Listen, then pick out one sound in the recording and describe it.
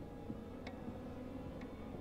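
Footsteps tap on a wooden staircase.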